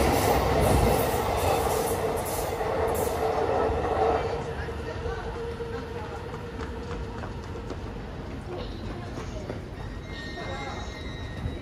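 A second train approaches slowly in the distance.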